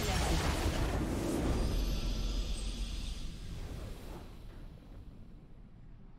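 A triumphant game fanfare swells and then fades.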